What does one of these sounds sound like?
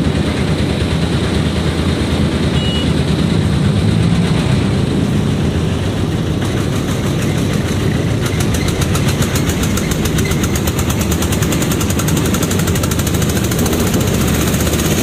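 A vehicle's engine rumbles steadily while driving along a road.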